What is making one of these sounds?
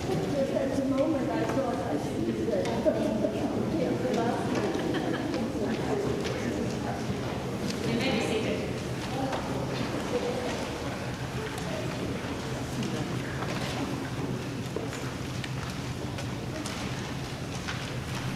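Many people chat and greet one another in murmured voices in a large echoing hall.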